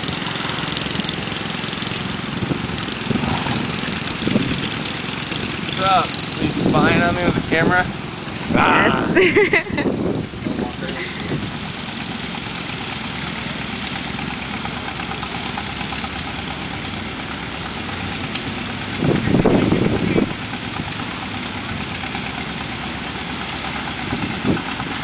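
Old farm tractors putter as they drive past.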